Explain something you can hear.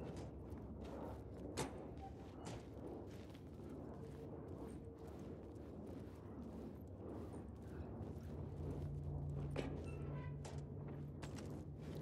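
Footsteps crunch on gravel and track ballast.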